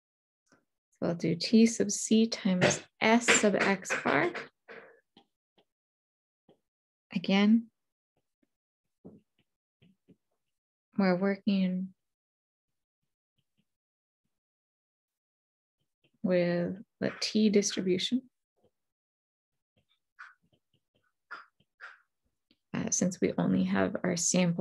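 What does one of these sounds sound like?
A woman talks calmly and explains close to a microphone, with pauses.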